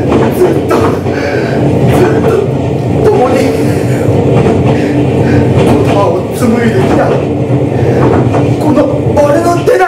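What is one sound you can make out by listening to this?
A man speaks with animation into a microphone, heard through loudspeakers in an echoing room.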